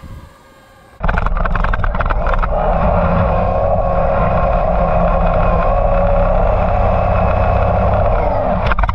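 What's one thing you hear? Water rushes and sprays steadily as a small vehicle skims across it.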